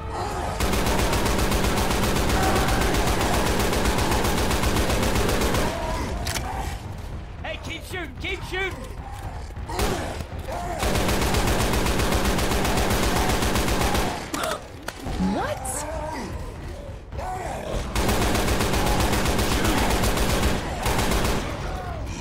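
A rifle fires in long rapid bursts.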